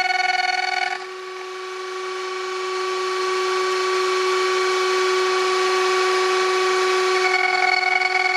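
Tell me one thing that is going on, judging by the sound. A router grinds into spinning wood.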